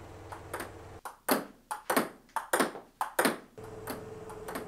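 A table tennis ball clicks back and forth against paddles.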